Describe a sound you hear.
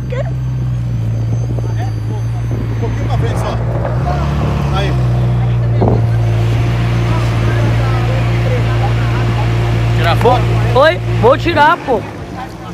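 A sports car engine idles with a deep, steady rumble close by, then cuts off.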